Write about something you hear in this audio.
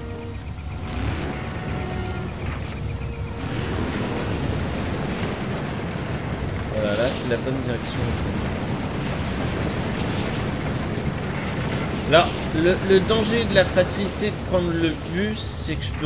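A buggy engine rumbles steadily as it drives along a rough track.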